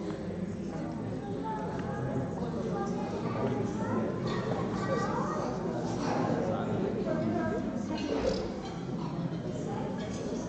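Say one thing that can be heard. Men talk calmly nearby in an echoing room.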